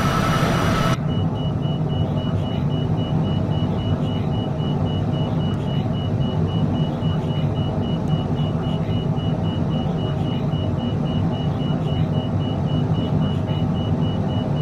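A jet engine hums steadily, muffled inside a cabin.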